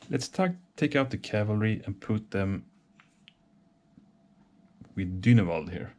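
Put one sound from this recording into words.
A game piece clicks softly onto a cardboard board.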